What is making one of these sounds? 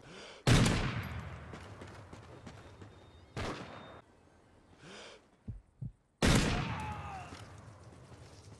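A sniper rifle fires single shots that boom and echo outdoors.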